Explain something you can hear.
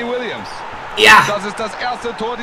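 A young man shouts loudly in excitement.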